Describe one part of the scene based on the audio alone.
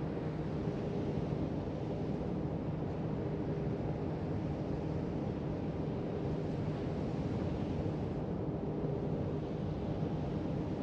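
Water rushes and splashes along a ship's hull.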